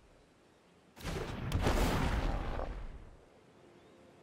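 A game sound effect whooshes and rumbles.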